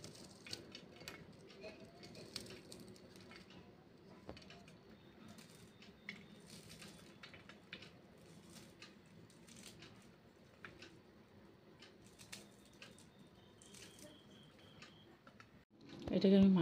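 Small crumbled pieces drop with light clicks onto a metal plate.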